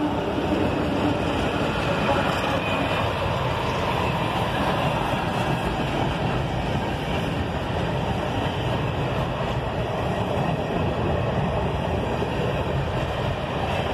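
A freight train rumbles past close by, its wheels clattering loudly over the rails.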